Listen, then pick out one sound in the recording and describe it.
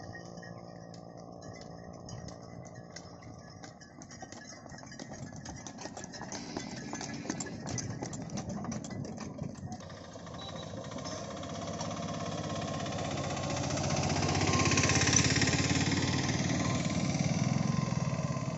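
Hooves clop on a paved road.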